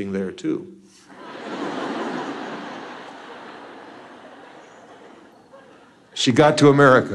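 An audience laughs and then quiets down.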